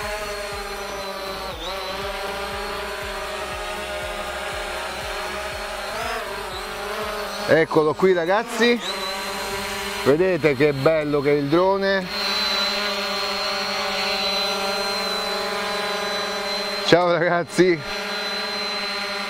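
A drone's propellers whine steadily close by.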